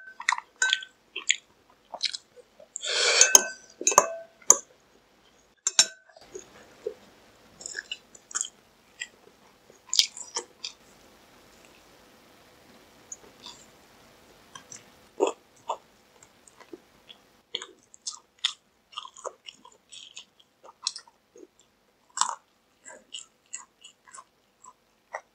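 A young man chews and smacks his lips close to a microphone.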